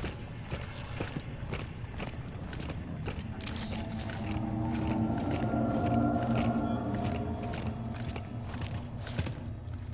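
Heavy armoured footsteps clank steadily on a hard floor.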